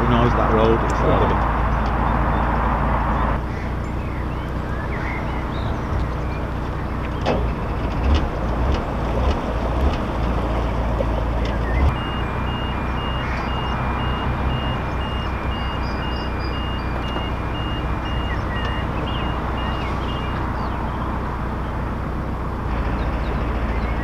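A boat's engine chugs steadily at low speed.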